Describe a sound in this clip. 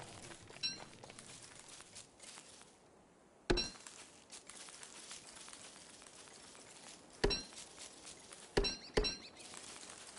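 Short game chimes ring out now and then.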